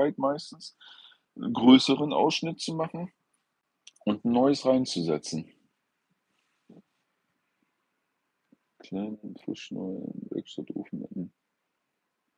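A middle-aged man speaks calmly and close by, in short bursts with pauses.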